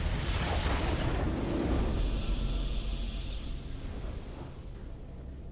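A short triumphant game fanfare plays and fades away.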